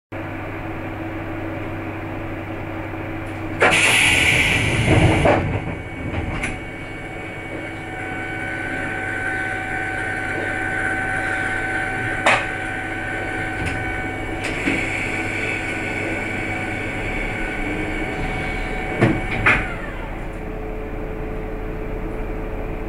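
A diesel railcar engine idles.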